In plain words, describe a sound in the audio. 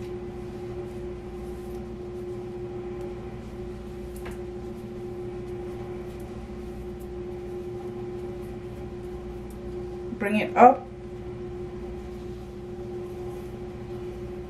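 Fabric rustles as it is twisted and tucked.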